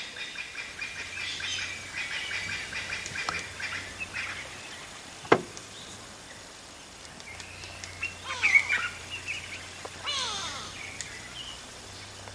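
A small bird chirps sharply close by.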